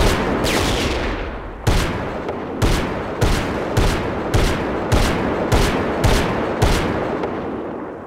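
A heavy machine gun fires in loud bursts that boom and echo.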